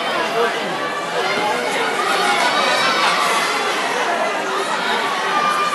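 A large crowd chatters throughout a big echoing hall.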